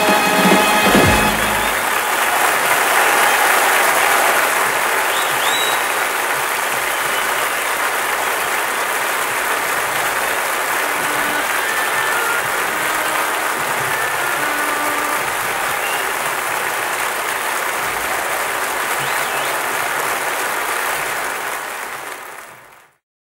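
A large crowd applauds loudly in a big echoing hall, then the applause fades out.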